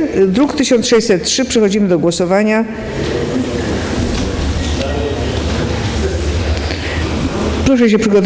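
A woman speaks with animation through a loudspeaker in a large echoing hall.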